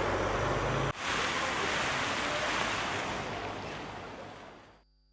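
A fountain splashes and sprays water.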